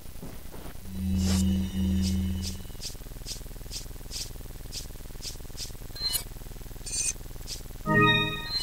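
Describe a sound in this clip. Game menu tones beep and click as selections change.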